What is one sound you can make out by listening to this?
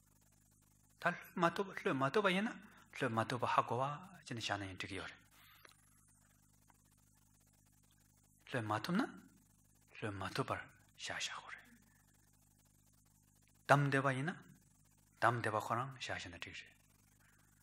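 A man speaks slowly and calmly into a microphone, with long pauses.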